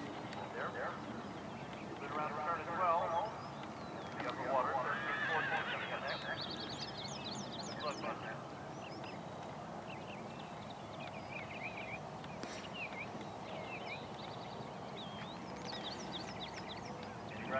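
A horse gallops on grass with dull hoof thuds.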